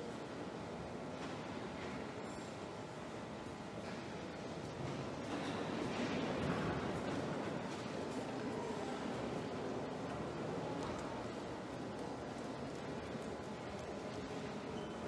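A crowd murmurs softly in a large echoing hall.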